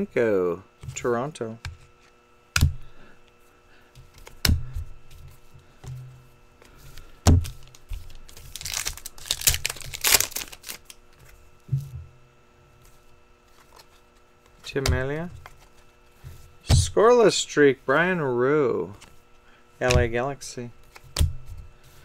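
Trading cards slide and tap against each other.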